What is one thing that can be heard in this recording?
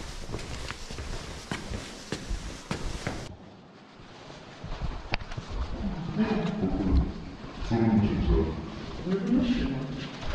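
Footsteps thud on stairs and a hard floor.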